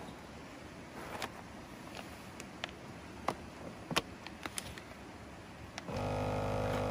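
Plastic crinkles as a bag is pressed into a sealer.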